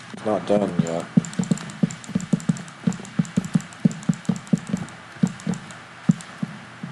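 Wooden blocks thud into place in quick succession.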